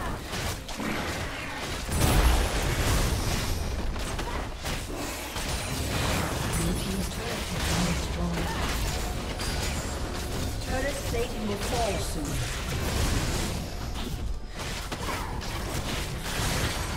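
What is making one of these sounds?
Game fight effects crackle, zap and thud.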